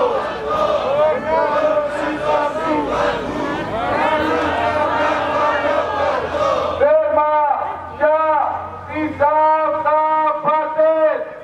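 A crowd of men and women chants and sings loudly outdoors.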